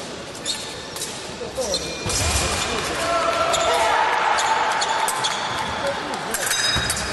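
Sports shoes squeak on a hard floor in a large echoing hall.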